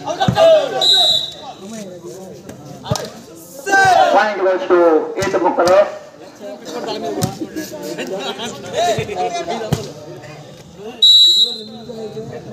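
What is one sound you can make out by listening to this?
A man whistles sharply.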